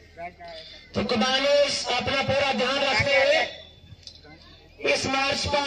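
A man speaks loudly and with animation through a microphone and loudspeaker.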